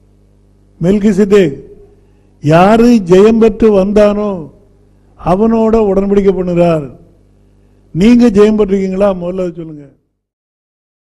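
An elderly man speaks calmly into a close microphone, in short phrases with pauses.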